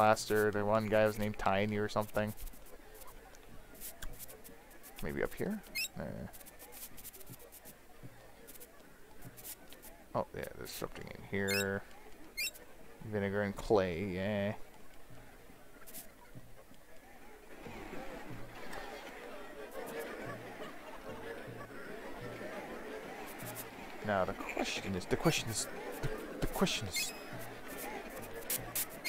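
Chiptune game music plays throughout.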